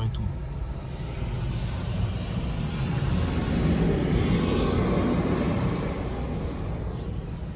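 A jet plane roars low overhead.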